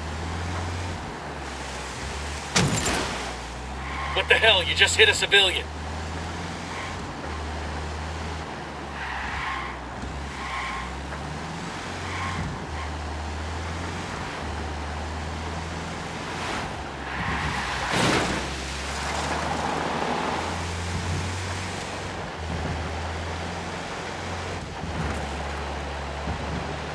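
A vehicle engine drones steadily as it drives along.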